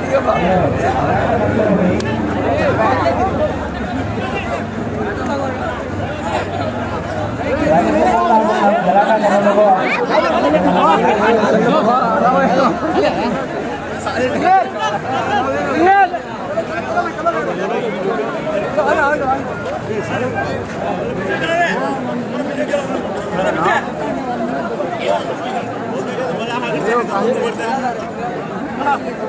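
A large crowd of young men chatters and shouts all around, outdoors.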